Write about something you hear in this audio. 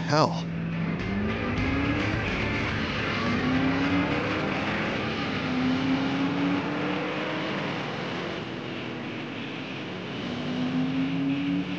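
A car engine revs and roars as the car drives off.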